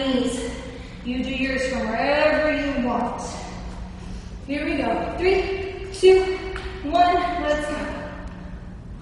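A young woman talks with animation, close by.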